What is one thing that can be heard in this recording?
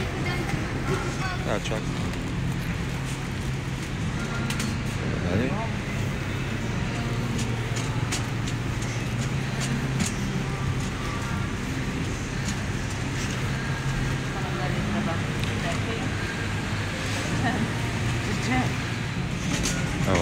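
A shopping cart rattles as it rolls over a tiled floor.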